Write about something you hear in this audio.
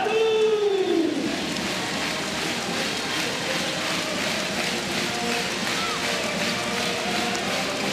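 A ball bounces on a hard court.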